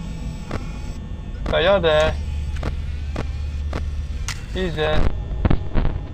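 Static hisses and crackles.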